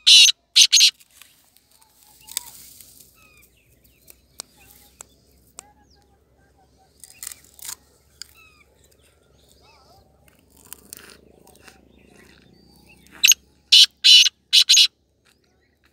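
A bird calls loudly in short, harsh bursts close by.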